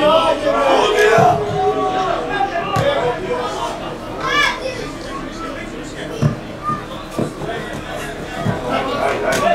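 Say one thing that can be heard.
A football is kicked with dull thuds outdoors.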